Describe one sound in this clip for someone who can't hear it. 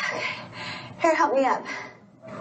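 A girl speaks brightly and with animation.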